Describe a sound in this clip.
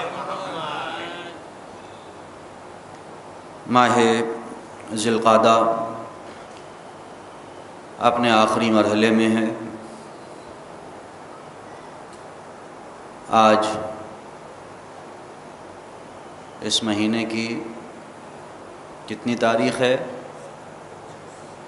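A man speaks slowly and solemnly into a microphone, in short phrases with pauses.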